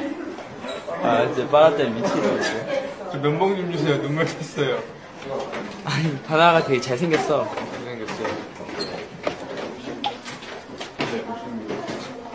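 A young man speaks softly up close.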